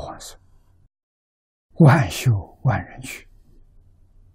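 An elderly man speaks calmly and slowly into a close microphone.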